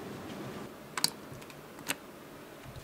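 A finger presses a button, which clicks.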